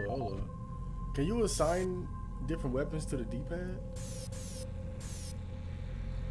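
Short electronic beeps and chirps sound in quick bursts.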